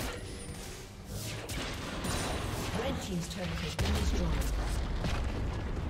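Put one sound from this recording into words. Game spell effects crackle and whoosh during a fight.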